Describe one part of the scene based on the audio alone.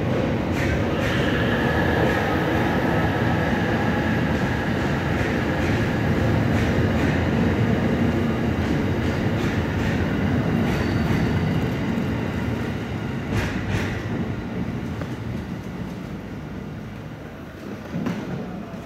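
A train rumbles past close by and slowly fades.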